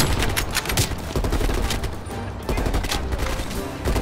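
A rifle bolt clicks and clacks during a reload.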